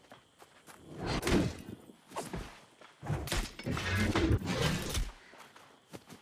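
Heavy hammer blows thud against a creature in combat.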